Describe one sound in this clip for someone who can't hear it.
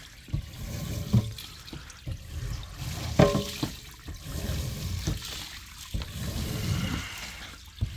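Water splashes and drains through a plastic floor grate.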